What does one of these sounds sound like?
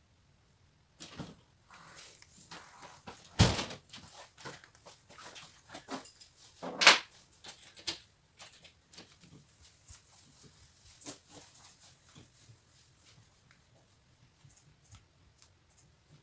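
A canvas knocks and scrapes against a table as hands tilt it.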